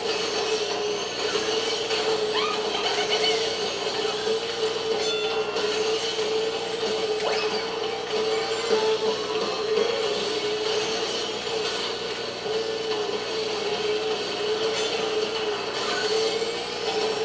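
A kart's boost roars in bursts.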